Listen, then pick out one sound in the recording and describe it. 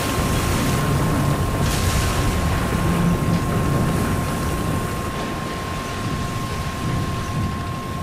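A heavy metal structure crashes down into rushing water.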